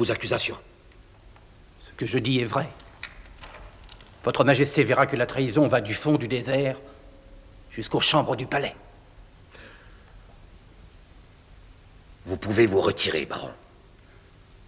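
A man speaks calmly and gravely nearby.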